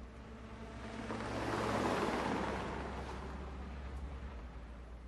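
A car drives past on a road, its engine and tyres swelling and then fading.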